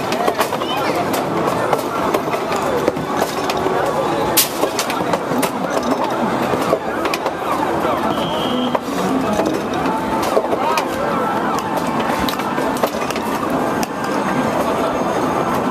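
Hard balls roll up an arcade alley lane and clack into scoring rings.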